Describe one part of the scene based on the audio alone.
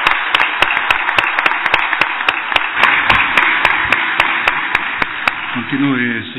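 A crowd claps rhythmically.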